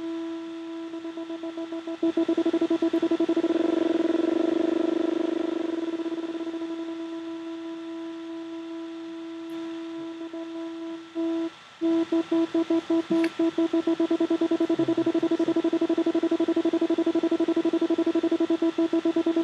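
A steady electronic tone pulses rapidly from a computer.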